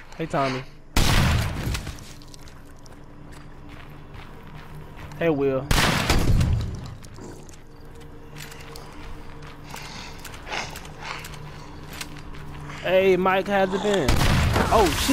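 A shotgun fires loudly with a booming echo.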